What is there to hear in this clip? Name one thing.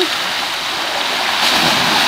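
A man splashes as he slides into a pool of water.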